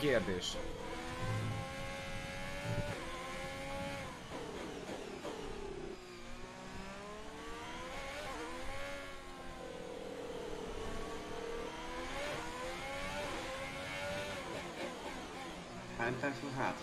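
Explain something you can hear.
A racing car engine whines at high revs and drops in pitch as the car slows.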